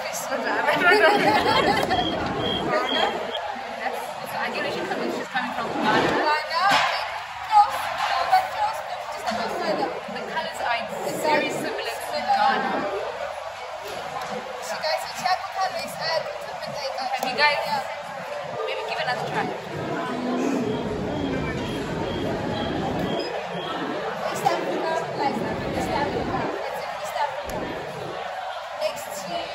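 Young women talk together close by.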